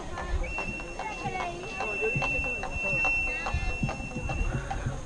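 A flute plays a high held note.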